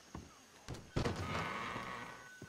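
Swinging saloon doors bang open.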